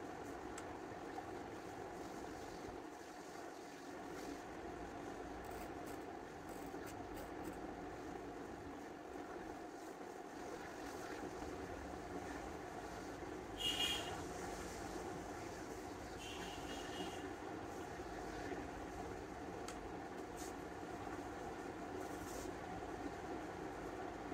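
An iron slides across cloth.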